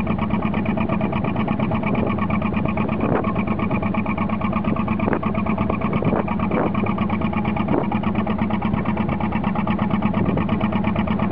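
Choppy water splashes against a boat's hull.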